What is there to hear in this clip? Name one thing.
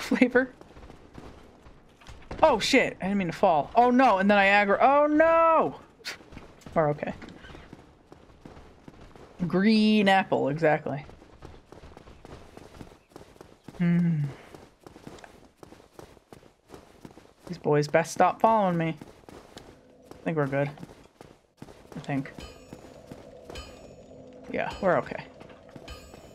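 A young woman talks with animation close to a microphone, in bursts.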